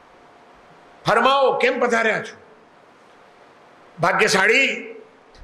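An elderly man speaks slowly and deliberately into a microphone, heard through a loudspeaker, with pauses between phrases.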